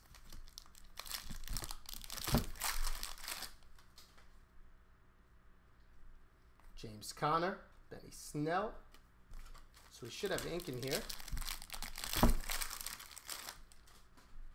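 A plastic wrapper crinkles and rustles as it is torn open.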